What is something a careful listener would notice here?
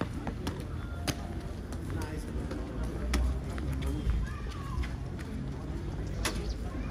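Footsteps click on wet paving outdoors.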